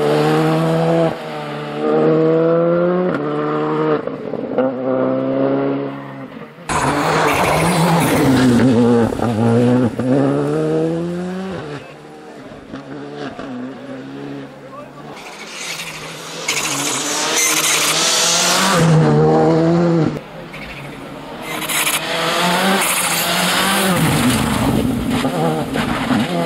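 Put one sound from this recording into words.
A rally car engine roars and revs hard, its pitch climbing and dropping with each gear change.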